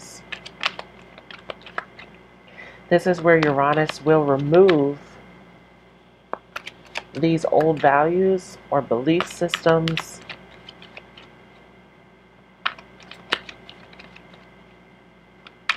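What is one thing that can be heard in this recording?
Playing cards riffle and flick as they are shuffled by hand.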